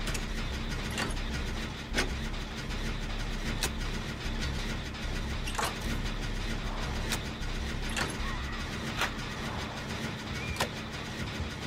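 Sharp metallic clicks sound at irregular intervals.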